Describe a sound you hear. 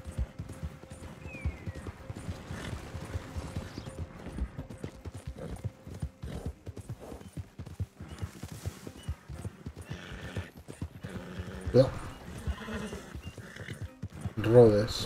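A horse's hooves thud steadily on a dirt track.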